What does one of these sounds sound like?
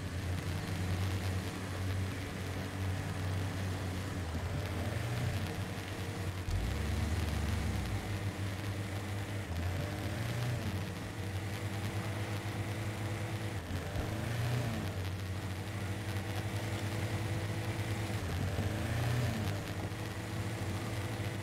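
An off-road vehicle's engine rumbles and revs as it climbs over rough rock.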